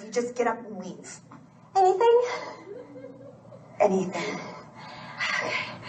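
A young woman speaks calmly and softly.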